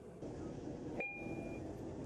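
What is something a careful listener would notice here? A stop-request chime sounds once.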